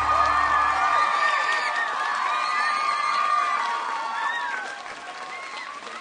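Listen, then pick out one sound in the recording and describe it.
A large crowd of children screams and cheers loudly, fading slightly toward the end.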